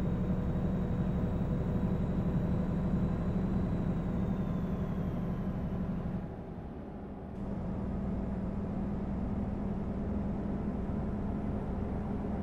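A heavy truck engine drones steadily, dropping away briefly before picking up again.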